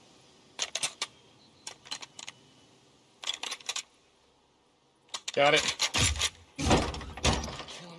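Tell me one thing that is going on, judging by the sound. A wooden door bangs and rattles as it is pushed open.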